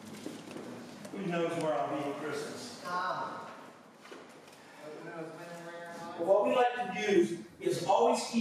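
A man speaks calmly in a room.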